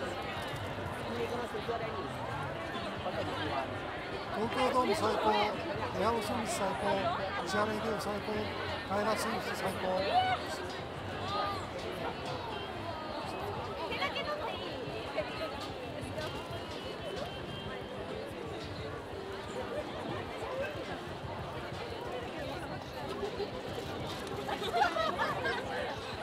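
A large crowd of young men and women chatters outdoors.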